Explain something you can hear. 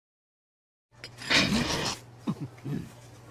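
A man slurps noodles from a bowl.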